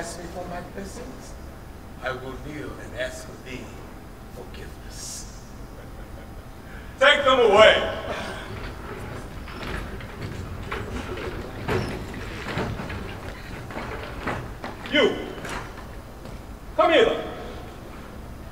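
A man speaks loudly and dramatically in a large echoing hall.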